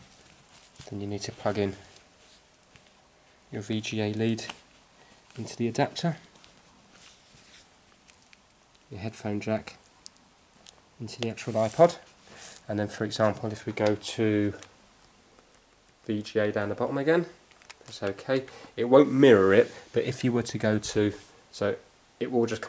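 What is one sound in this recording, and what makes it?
A man speaks calmly close to the microphone, in short phrases.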